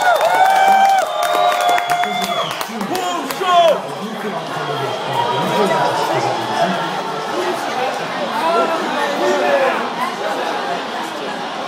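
Many voices chatter and murmur in a busy room.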